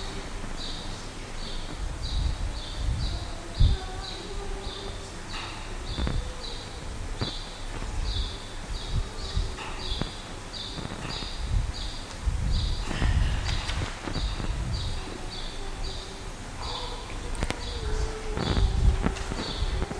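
A woman talks quietly at a distance in a large echoing hall.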